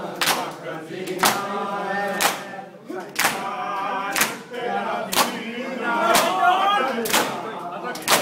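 A crowd of men beat their chests in a steady rhythm with loud slaps.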